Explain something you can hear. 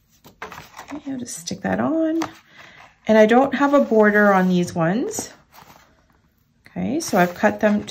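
Paper rustles as it is folded and handled.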